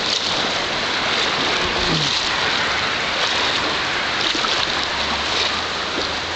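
A river rushes and gurgles steadily over stones.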